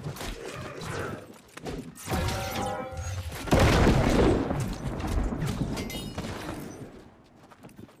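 Swords clash and strike in a fierce fight.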